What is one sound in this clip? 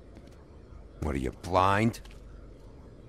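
A man asks a short, gruff question, close by.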